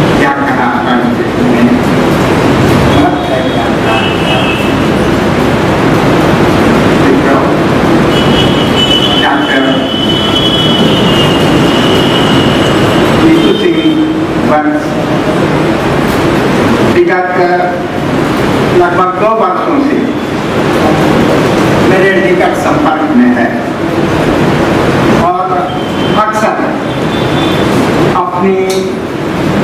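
An elderly man speaks calmly into a microphone over a loudspeaker, in an echoing room.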